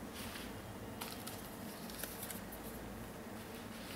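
A paper leaflet rustles.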